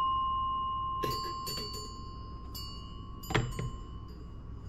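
A metal rod rattles and clinks inside a small bell.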